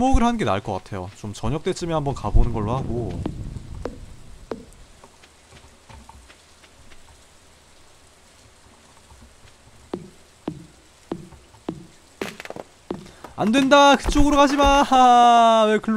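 Footsteps patter softly through grass.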